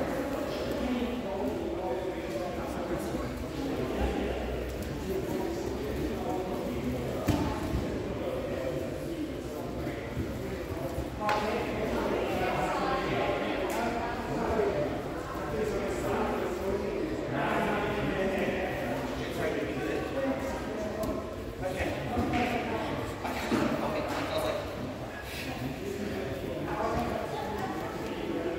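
Bodies thump softly on mats.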